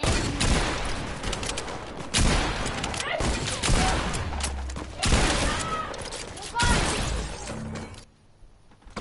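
Gunshots crack rapidly in a video game.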